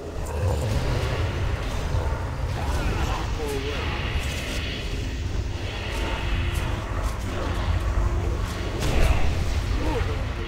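Spell effects and weapon strikes clash and burst in a game battle.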